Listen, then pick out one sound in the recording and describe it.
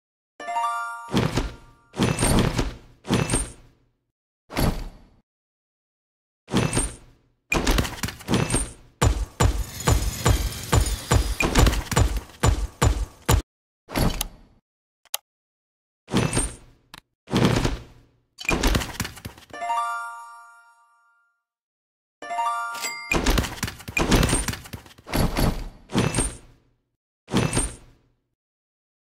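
Short game chimes and clicks sound now and then.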